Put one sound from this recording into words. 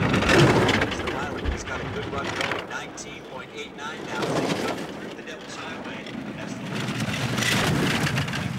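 A bobsleigh roars and rattles down an icy track.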